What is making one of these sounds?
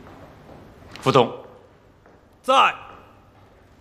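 A middle-aged man lets out two short, loud vocal sounds.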